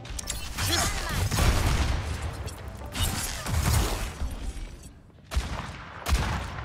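Game gunfire blasts in short bursts.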